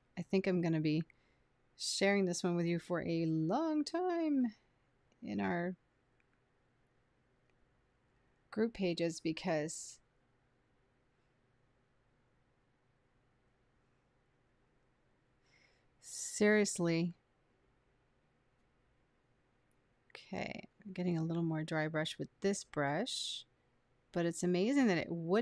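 A woman talks calmly and warmly, close to a microphone, in short bursts with pauses.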